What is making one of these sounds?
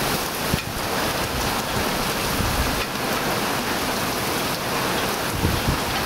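Wind gusts through trees.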